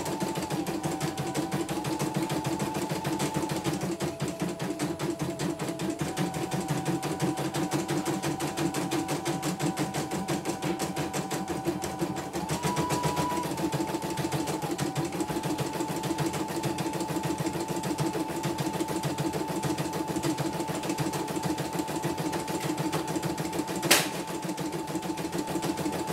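An embroidery machine whirs and taps rapidly and steadily as it stitches.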